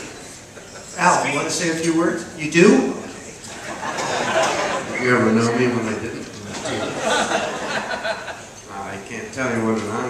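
An elderly man speaks through a microphone over loudspeakers in a large hall.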